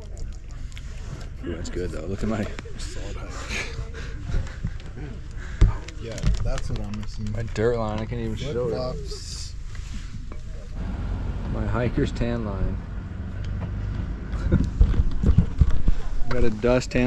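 A man talks casually and close by, outdoors.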